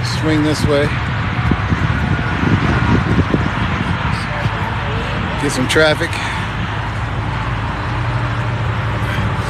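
A car engine rumbles low as the car creeps past at walking pace.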